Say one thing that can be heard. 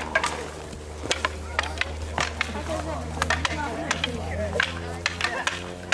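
Wooden practice swords clack together.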